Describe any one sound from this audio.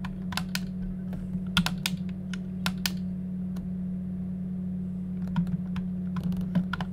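Short electronic blips sound from a video game menu.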